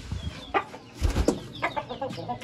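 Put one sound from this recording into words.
A chicken flaps its wings loudly close by.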